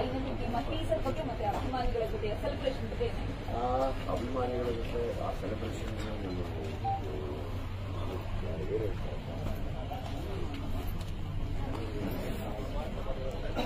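A crowd of men talk and call out nearby.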